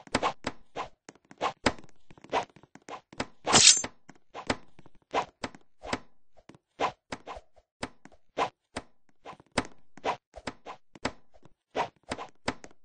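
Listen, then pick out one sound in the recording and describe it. Paintball guns fire with sharp, repeated pops.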